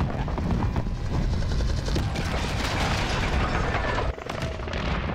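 Helicopter rotors thump loudly overhead.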